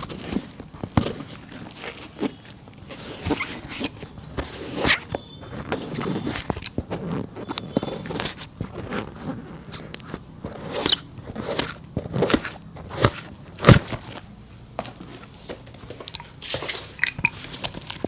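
A hammer taps sharply on a rubber sole, again and again.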